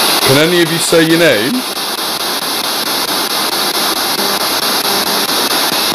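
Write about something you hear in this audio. A radio scanner hisses with static, chopping rapidly as it sweeps.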